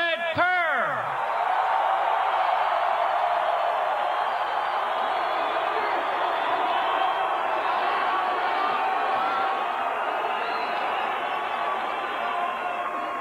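A large outdoor crowd cheers and screams loudly.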